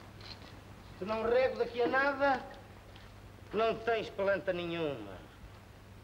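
A man speaks with animation.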